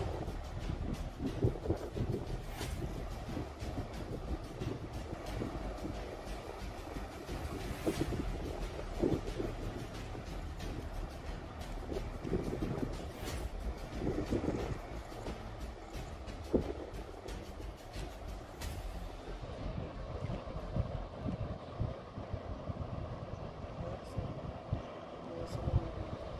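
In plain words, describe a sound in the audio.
Small waves wash gently onto a shore.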